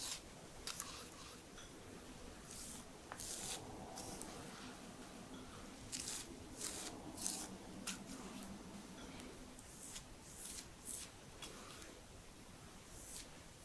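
A brush scrapes cream from a bowl with short swishes.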